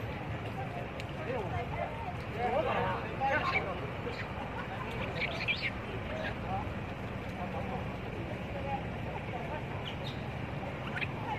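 Monkeys squeal and chatter nearby.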